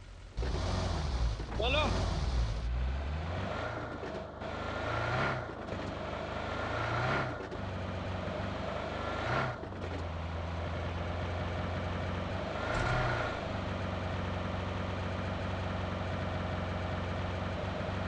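A car engine hums steadily and revs up now and then as the car drives over rough ground.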